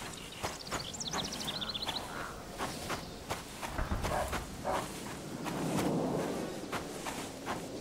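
Footsteps crunch on grass and gravel at a steady pace.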